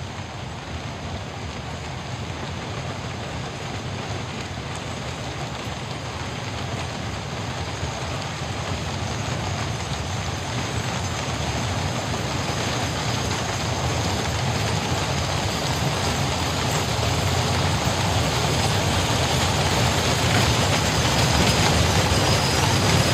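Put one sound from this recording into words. Many horses' hooves clatter on the road, steadily growing louder as they come closer.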